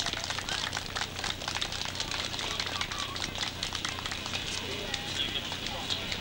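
A crowd applauds close by.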